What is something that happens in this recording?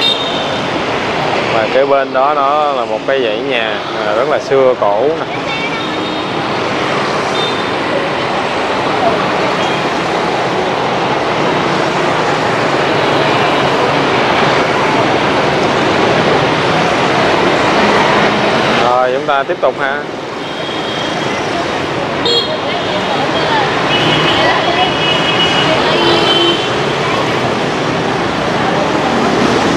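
Traffic roars steadily along a busy street.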